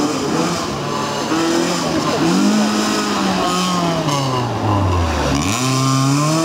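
A car engine revs hard as the car speeds past on a tarmac road.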